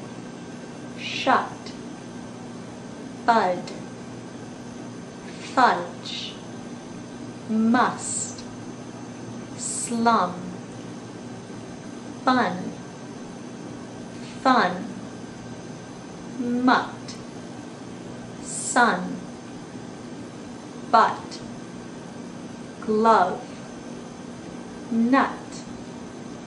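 A young woman speaks single short words up close, one about every two seconds, with pauses in between.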